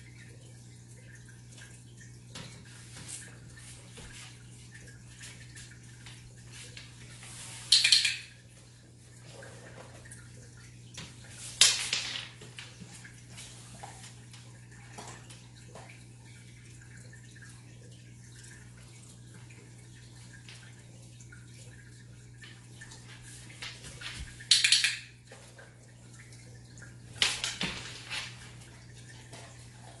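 A dog's claws tap on a wooden floor as it walks about.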